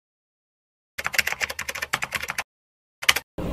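Keyboard keys clatter in quick typing.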